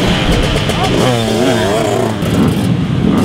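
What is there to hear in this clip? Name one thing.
A dirt bike engine revs up and down sharply.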